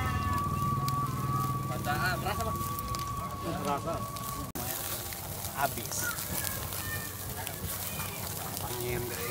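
A hand fan whooshes over a charcoal fire.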